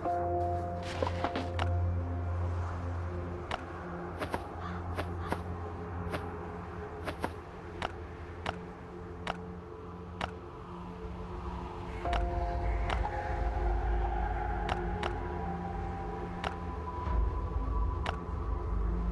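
Short interface clicks sound as items are moved between slots.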